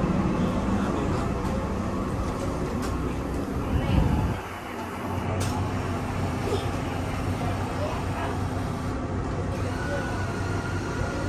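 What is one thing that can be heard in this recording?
A train rumbles steadily along the track.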